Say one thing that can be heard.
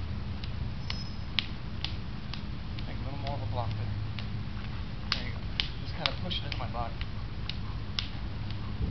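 Hands slap and tap against arms in quick, sharp strikes.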